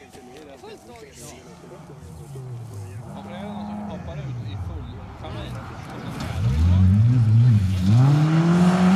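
A second rally car engine revs hard, rising and falling as it approaches and passes close by.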